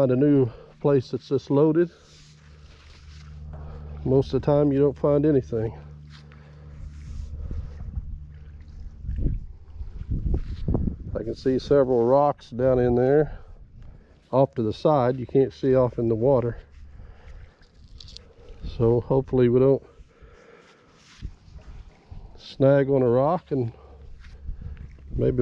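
A rope rustles as it is pulled through gloved hands.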